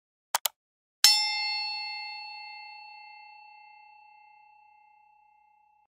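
A small bell rings once and slowly fades away.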